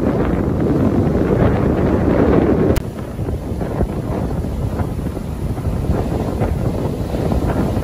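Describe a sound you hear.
Wind blows hard outdoors, buffeting the microphone.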